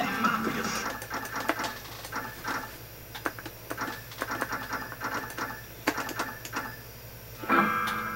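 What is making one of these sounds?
Menu clicks tick rapidly from a television speaker as a list scrolls.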